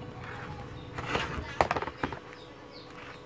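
A circuit board knocks and clatters as it is turned over on a hard surface.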